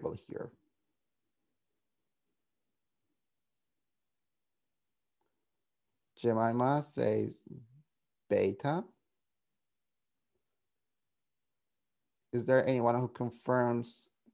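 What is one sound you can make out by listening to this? A man speaks calmly through an online call, in short phrases with pauses.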